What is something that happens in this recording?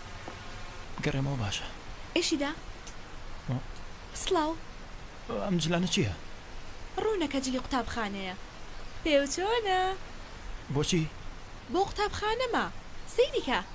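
A young man speaks calmly and hesitantly.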